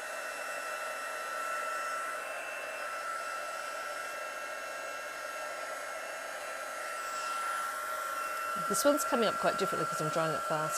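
A heat gun whirs and blows steadily close by.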